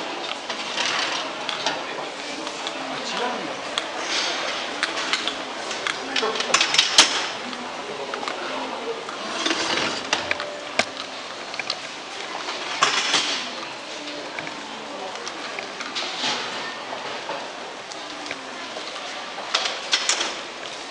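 Distant people murmur in a large echoing hall.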